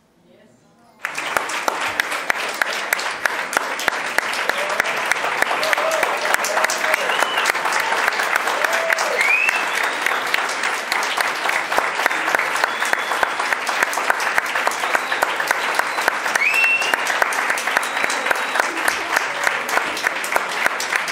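A large crowd applauds with steady clapping.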